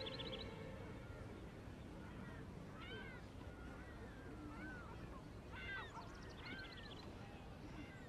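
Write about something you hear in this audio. A crowd of people murmurs softly in the distance.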